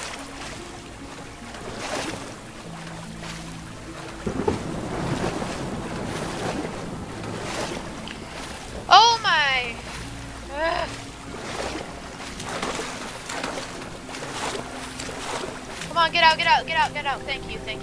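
Water ripples and laps gently.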